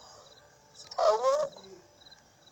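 A woman speaks sharply, close by.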